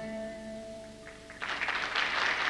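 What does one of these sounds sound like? An electronic keyboard plays a held chord.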